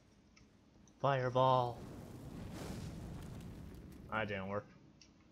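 A fireball bursts with a loud roar.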